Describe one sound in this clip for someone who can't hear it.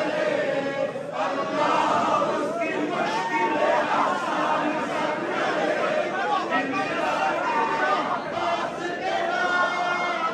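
A large crowd of men chants and cries out loudly in an echoing hall.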